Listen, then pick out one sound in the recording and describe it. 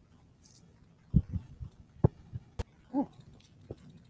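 A ball thuds onto grass and bounces.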